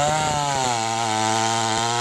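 A chainsaw cuts into a tree trunk.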